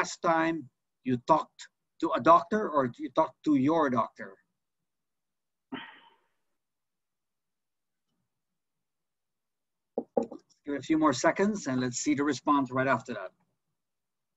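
A middle-aged man talks calmly over an online call.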